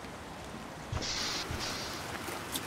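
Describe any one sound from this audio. A sliding door hisses open.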